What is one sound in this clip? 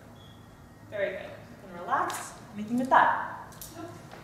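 A woman speaks clearly and calmly nearby.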